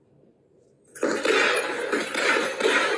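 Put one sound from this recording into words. A gunshot rings out in an echoing room.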